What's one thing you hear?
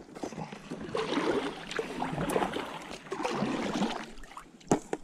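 Oars dip and splash in water.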